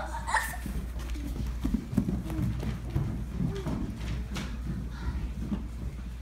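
Children chatter and laugh nearby in an echoing room.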